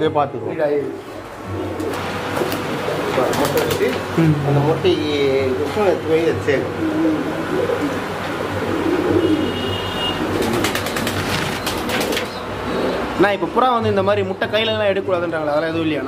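Pigeons coo in low, throaty warbles.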